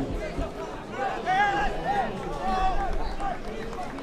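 Men in a crowd shout loudly.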